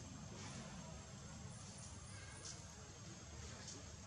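Leaves and branches rustle as monkeys climb through a tree.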